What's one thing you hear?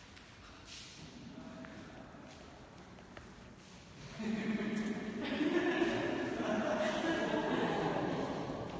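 A young woman speaks up clearly to a group in a large, echoing room.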